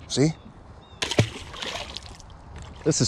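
A fish splashes into water close by.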